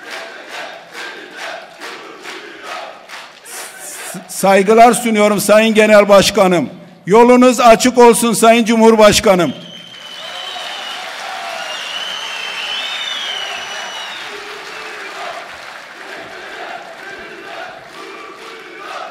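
A large crowd claps and applauds.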